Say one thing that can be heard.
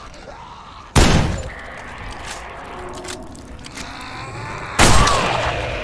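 A rifle fires two loud shots with a ringing echo.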